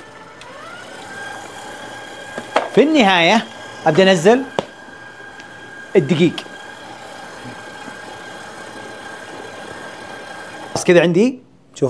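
A stand mixer whirs steadily.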